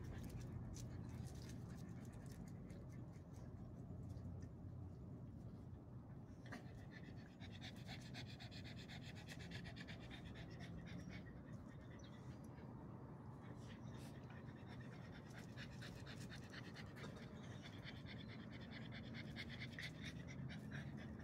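A dog pants rapidly close by.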